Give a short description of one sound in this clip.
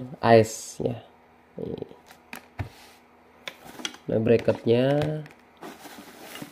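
Tissue paper rustles and crinkles as it is handled.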